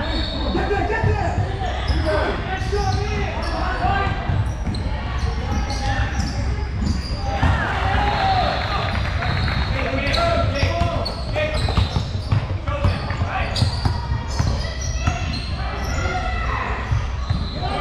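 Spectators talk and call out in a large echoing gym.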